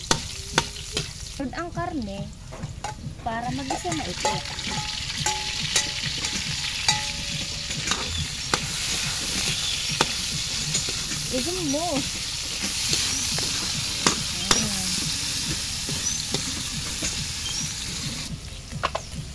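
Food sizzles steadily in a hot wok.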